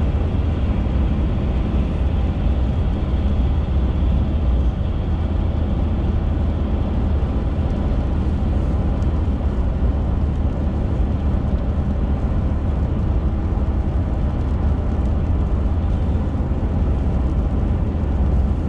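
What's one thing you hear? Tyres roar on a wet road.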